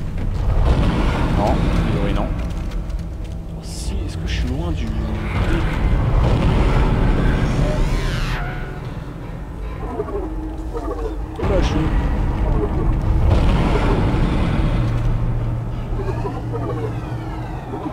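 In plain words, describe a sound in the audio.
A monster snarls and growls up close.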